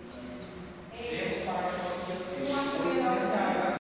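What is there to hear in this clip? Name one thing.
Women talk nearby in an echoing empty room.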